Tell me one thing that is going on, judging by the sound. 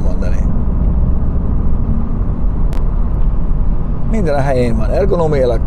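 A car engine and tyres rumble low and steady from inside a moving car.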